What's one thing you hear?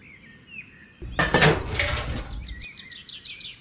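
A small plastic pump is set down with a knock.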